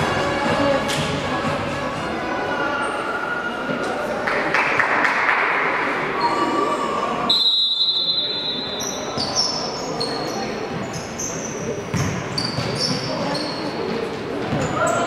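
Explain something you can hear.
A futsal ball is kicked in a large echoing hall.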